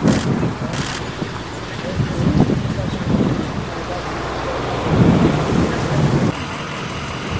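Footsteps scuff on pavement as several men walk outdoors.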